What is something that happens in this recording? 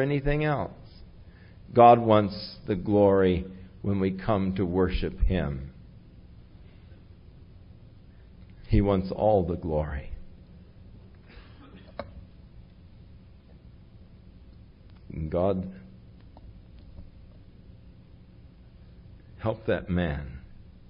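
An elderly man speaks warmly into a microphone, pausing often.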